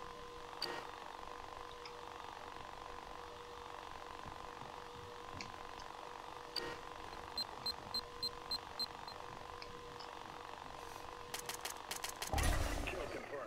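A small drone hums steadily.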